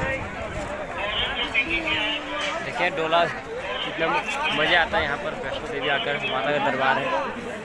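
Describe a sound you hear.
A young man talks with animation close to a phone microphone.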